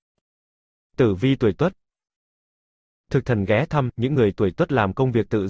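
A man speaks with animation.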